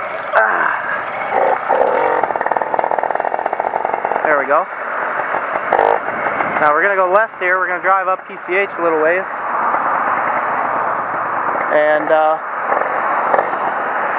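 A motorcycle engine hums and buzzes while riding.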